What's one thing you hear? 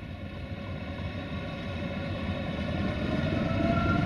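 Freight wagons clatter over the rails.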